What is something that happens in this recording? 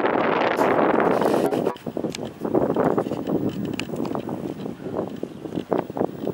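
A horse's hooves thud on soft sand as it walks.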